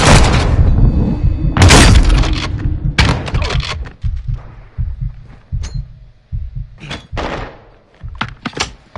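Gunshots crack loudly with echoing blasts.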